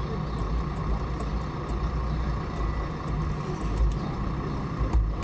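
A fuel pump hums steadily as fuel flows through a nozzle.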